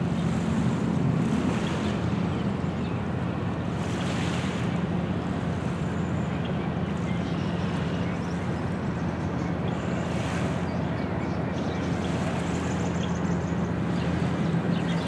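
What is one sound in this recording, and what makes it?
Small waves lap gently against the shore.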